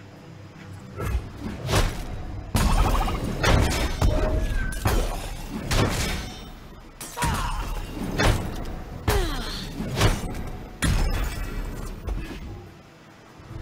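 Game sound effects crash and clash in bursts.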